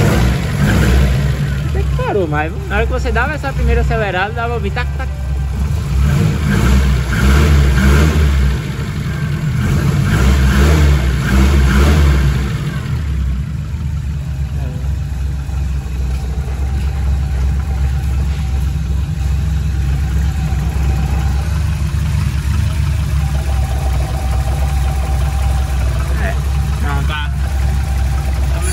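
A car engine idles nearby with a steady low rumble.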